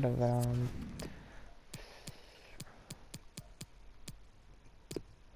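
Short menu clicks tick repeatedly.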